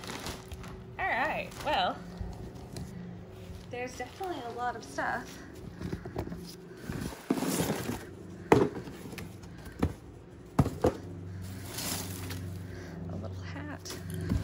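Packets and boxes knock and rattle as they are moved about.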